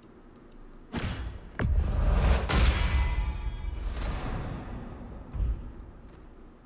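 A deep, booming whoosh and ringing swell rise loudly, then fade.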